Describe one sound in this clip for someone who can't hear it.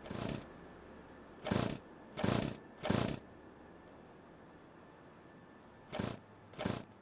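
A chainsaw engine revs in short, loud bursts.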